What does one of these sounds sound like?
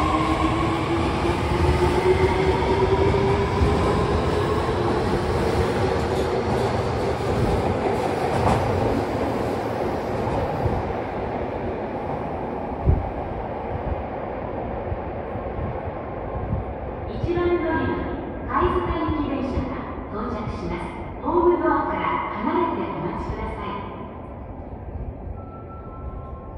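A train rumbles past close by, then fades into the distance.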